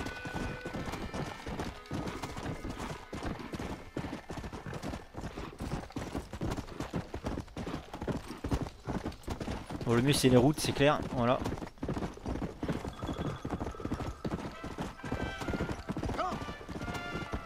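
A horse gallops steadily, hooves pounding on dirt.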